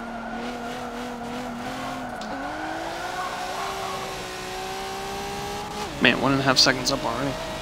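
A racing car engine drones steadily, then climbs in pitch after a gear change as the car speeds up.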